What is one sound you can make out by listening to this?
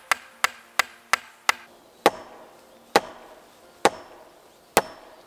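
A hammer strikes wood with sharp, ringing knocks, quickly at first and then more slowly.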